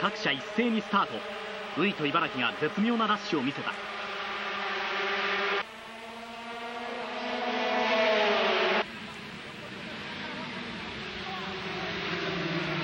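Racing motorcycle engines scream at high revs as they speed past.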